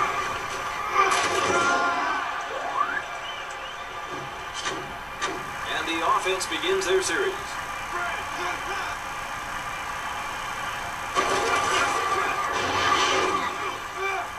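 A stadium crowd roars and cheers through a television speaker.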